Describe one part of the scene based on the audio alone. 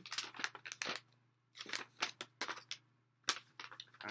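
Paper rustles as a young man unfolds a sheet.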